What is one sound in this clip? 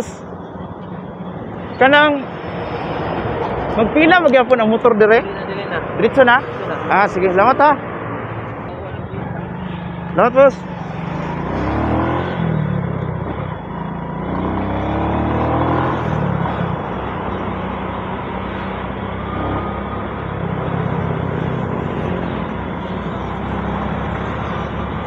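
A motorcycle engine idles and then revs as the motorcycle rides off.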